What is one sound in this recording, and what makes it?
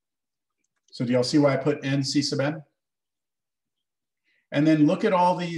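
A man talks calmly through a microphone, in short phrases with pauses.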